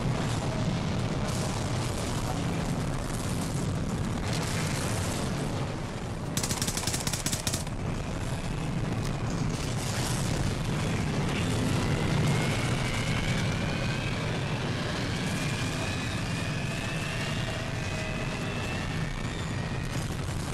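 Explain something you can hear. A tornado roars with strong, rumbling wind.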